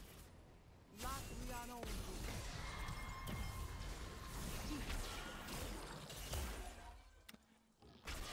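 Spell effects burst and clash loudly during a game fight.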